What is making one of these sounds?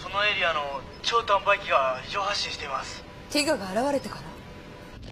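A young woman speaks with concern, close by.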